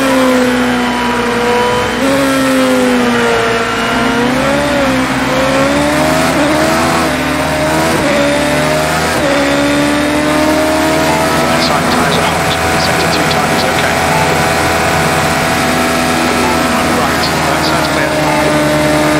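A racing car engine roars at high speed, its pitch rising and falling with gear changes.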